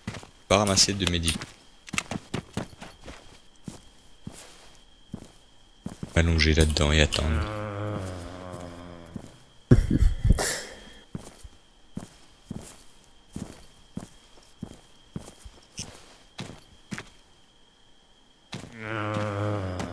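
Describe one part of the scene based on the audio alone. Footsteps crunch on dry grass and dirt.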